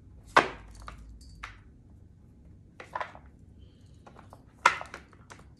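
Cards tap and shuffle sharply on a table close by.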